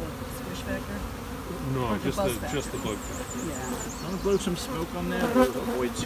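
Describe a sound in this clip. A woman talks calmly nearby, outdoors.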